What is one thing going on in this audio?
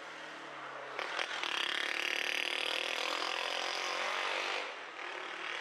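A motorcycle passes close by.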